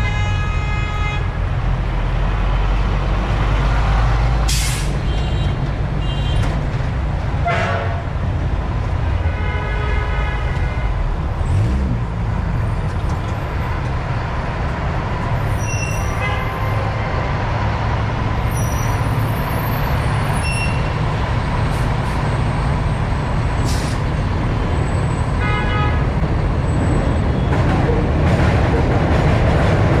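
An engine rumbles steadily close by.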